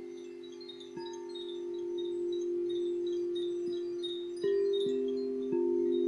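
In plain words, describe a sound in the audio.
A singing bowl is struck softly now and then, and its ring swells anew.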